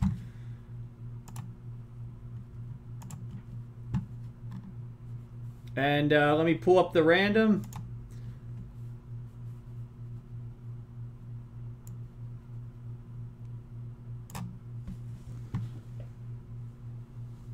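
A mouse clicks.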